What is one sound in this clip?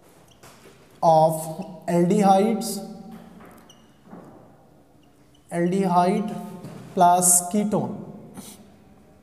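A man speaks clearly and with animation, close by, in short bursts.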